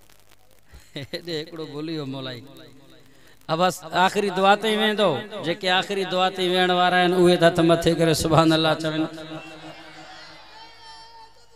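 A man sings in a long, drawn-out voice through a microphone, with echo.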